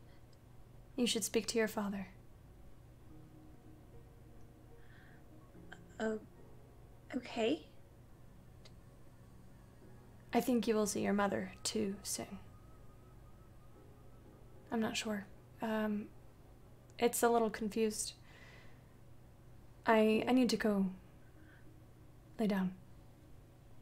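A young woman speaks calmly in short phrases through an online call microphone.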